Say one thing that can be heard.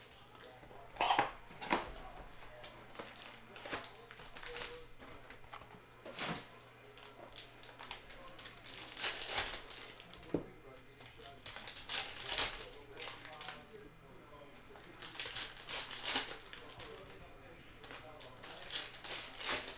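Cards tap and shuffle on a table.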